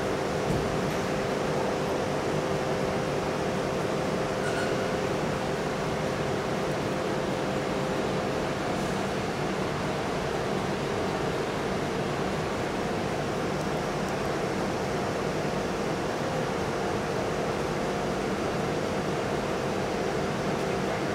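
A crane motor hums steadily in a large echoing hall.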